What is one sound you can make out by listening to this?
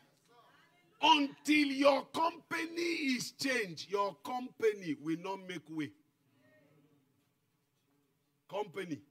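A man preaches loudly and with animation into a microphone.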